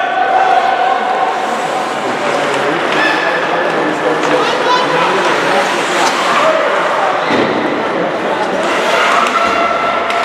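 Hockey sticks clack against a puck on the ice.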